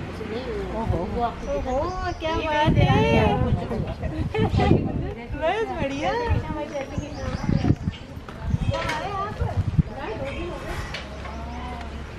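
Several women chat and laugh close by, outdoors.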